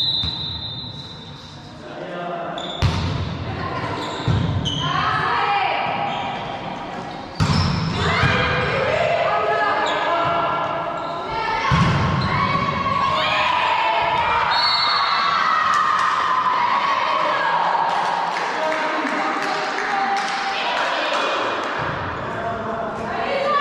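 Young women players call out and shout to each other.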